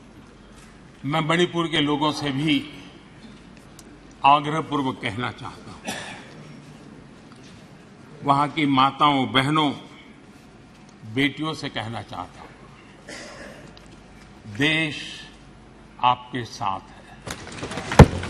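An elderly man speaks forcefully into a microphone.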